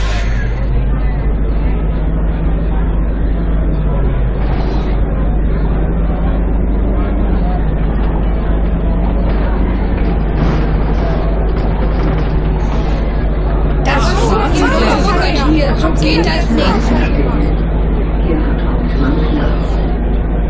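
A bus engine hums steadily and changes pitch as the bus drives.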